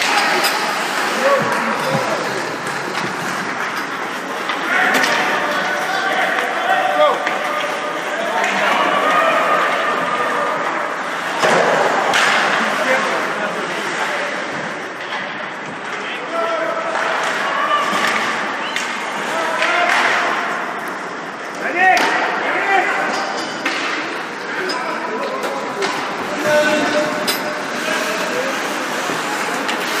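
A crowd of men and women chatter and call out in a large echoing arena.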